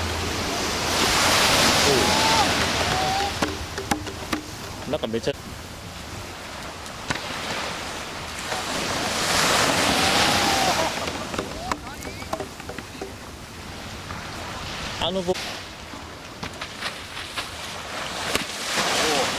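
Water splashes under a board skimming the surf.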